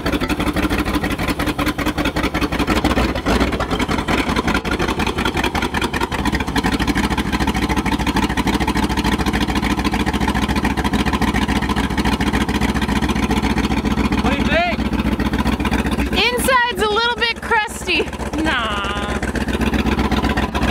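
A large truck engine idles with a loud, steady rumble close by.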